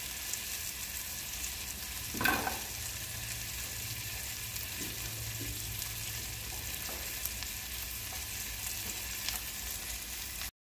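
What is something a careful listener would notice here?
Food sizzles and crackles in hot frying pans.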